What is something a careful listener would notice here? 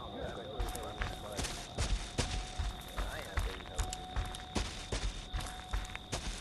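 Footsteps crunch steadily over leaves and soft ground.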